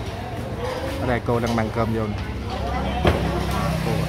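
A crowd of adults chatter nearby.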